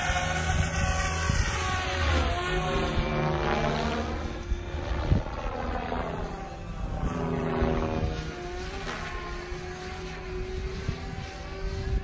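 A model helicopter's motor pitch rises and falls as it swoops overhead.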